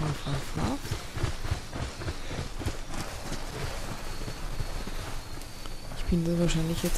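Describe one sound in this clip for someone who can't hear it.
Footsteps rustle through dry grass and bushes.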